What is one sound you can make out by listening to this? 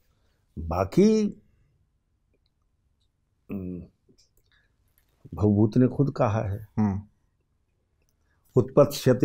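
An elderly man speaks with animation into a close microphone, in short bursts with pauses.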